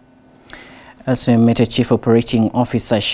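A man reads out calmly through a microphone.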